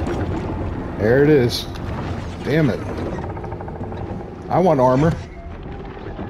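A large sea creature lets out deep, wavering moans.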